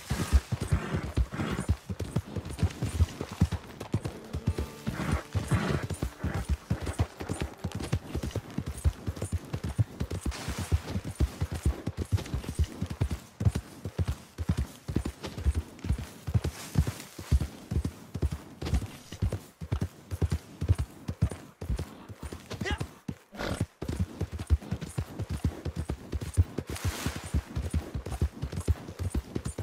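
Horse hooves thud steadily at a gallop.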